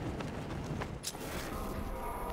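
A sudden whoosh sweeps through.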